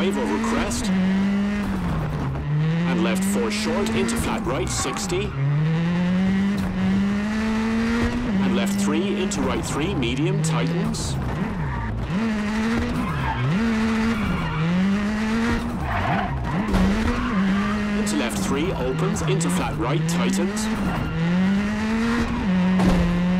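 A rally car engine revs up and down through gear changes.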